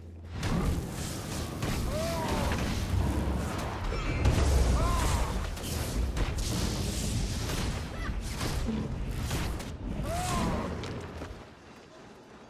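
Spell effects and weapon strikes crash and whoosh in a fight.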